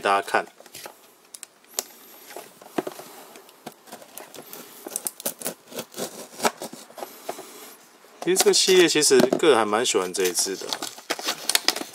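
Plastic packaging crinkles and rustles as hands handle it.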